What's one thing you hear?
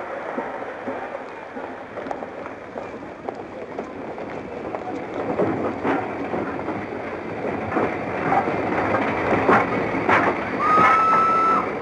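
A steam locomotive chugs as it pulls in.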